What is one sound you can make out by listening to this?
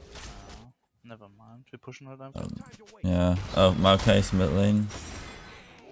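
A young man speaks with animation into a headset microphone.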